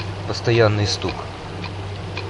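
A man speaks a few words close by.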